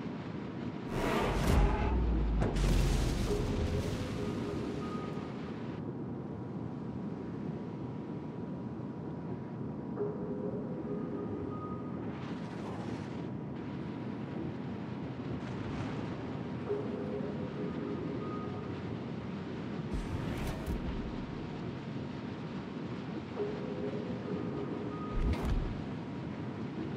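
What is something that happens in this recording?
Water rushes past a ship's hull.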